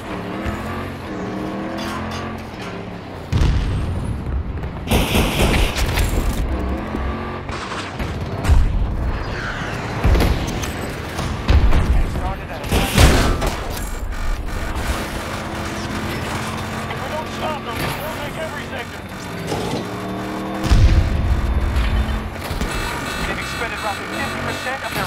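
An armoured wheeled vehicle's engine rumbles as it drives.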